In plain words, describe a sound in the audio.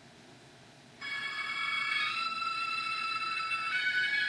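Music plays faintly from a small device speaker.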